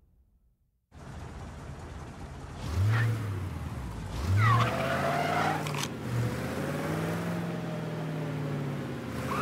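A car engine hums and revs as a car drives along.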